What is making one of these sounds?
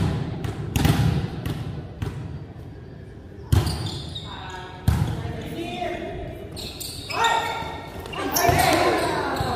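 A volleyball thumps sharply off hands and arms in a large echoing gym.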